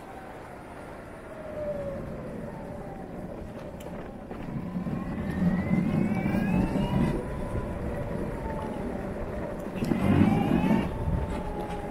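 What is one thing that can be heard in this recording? Wind rushes and rumbles past.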